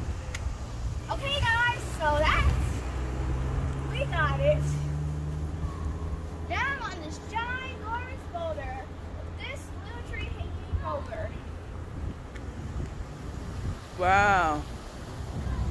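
A young girl calls out in a high voice nearby.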